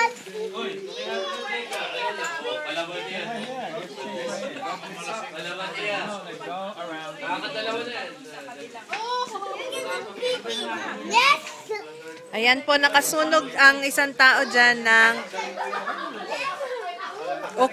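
Adults and young children talk and chatter nearby.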